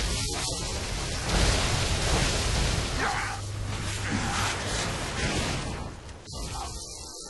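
Gunfire from a game rattles loudly.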